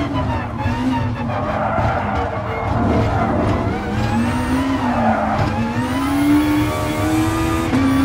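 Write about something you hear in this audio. A racing car engine roars loudly, its pitch rising and falling as it shifts gears.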